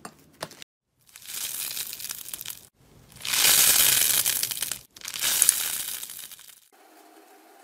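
Fluffy slime crackles and crunches as it is stretched.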